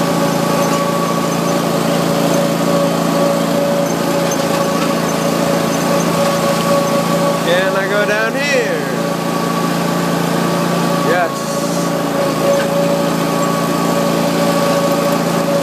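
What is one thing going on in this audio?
A small engine hums steadily at close range while driving along.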